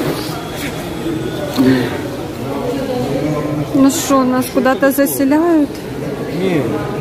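A young man talks with animation close by.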